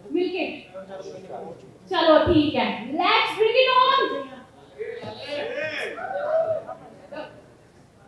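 A young woman talks into a microphone.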